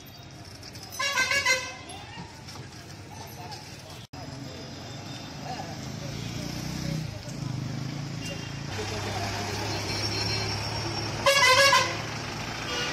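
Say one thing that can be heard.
A vehicle horn honks loudly.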